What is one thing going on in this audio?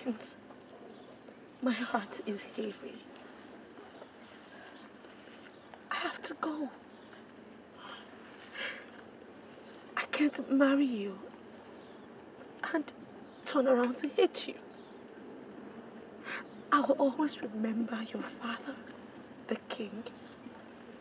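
A young woman speaks tearfully, her voice breaking.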